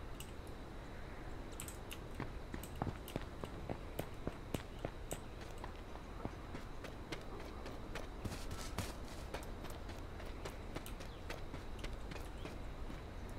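Footsteps tap quickly and steadily on hard ground.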